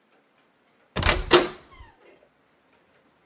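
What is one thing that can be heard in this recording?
A door swings open with a loud thud and creak.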